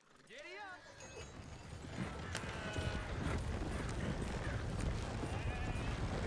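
Horses snort and whinny nearby.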